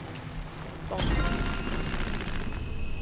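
A game chime sounds for an unlock.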